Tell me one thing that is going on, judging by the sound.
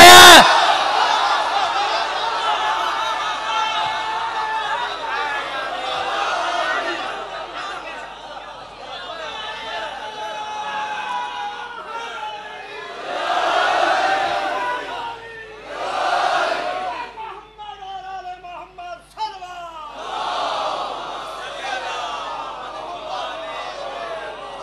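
A crowd of men chants loudly together in a large echoing hall.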